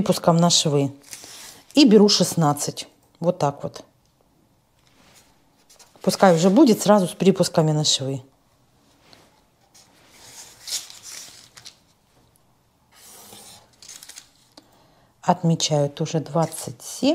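A pencil scratches lightly along paper.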